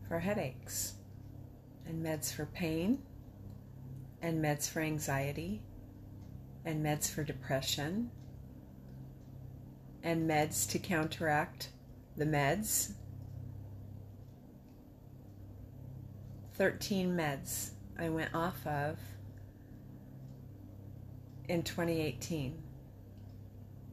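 An older woman speaks calmly and close up, with pauses between phrases.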